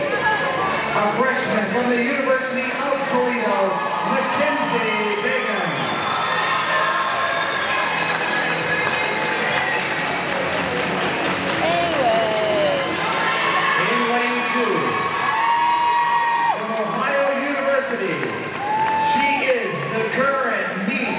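A crowd of people chatters and cheers in a large echoing hall.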